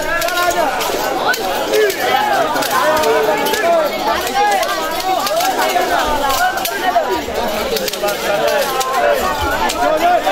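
A large crowd of men chants loudly outdoors.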